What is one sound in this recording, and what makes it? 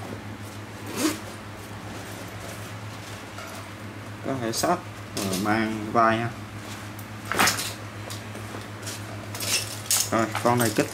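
A fabric bag rustles and shuffles as hands handle it.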